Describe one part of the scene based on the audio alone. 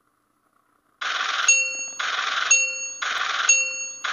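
Quick electronic chimes tick in bursts as numbers count up.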